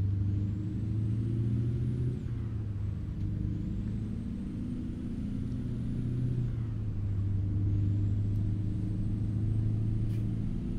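A truck engine drones low and steady, its pitch dipping now and then as gears shift.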